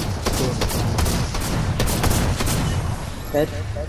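A submachine gun fires rapid bursts of shots.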